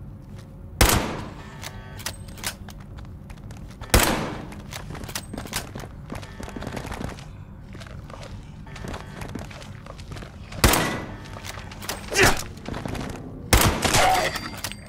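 A rifle fires single loud shots, each with a short echo.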